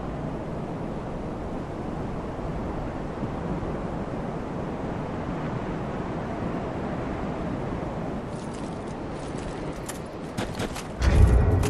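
Footsteps crunch through dry grass.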